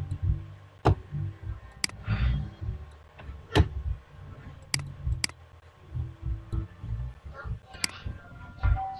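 Short, sharp game clicks sound every second or two.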